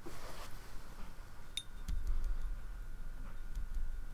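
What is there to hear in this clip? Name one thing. A paintbrush taps against a paint palette.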